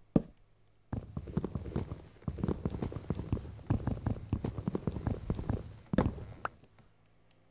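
A wooden block is struck over and over with rapid crunching knocks.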